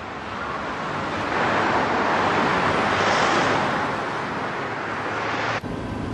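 A car passes by on the road.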